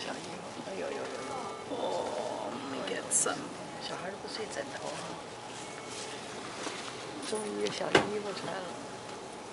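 A newborn baby whimpers and fusses close by.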